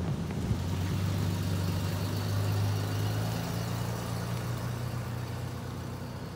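Tyres hiss on wet pavement.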